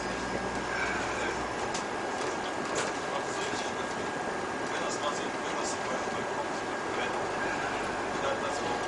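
Bus tyres roll on asphalt.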